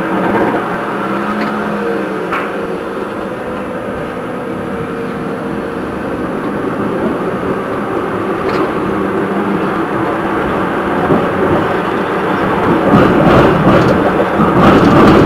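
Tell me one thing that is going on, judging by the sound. A tram hums and rumbles along its rails, growing louder.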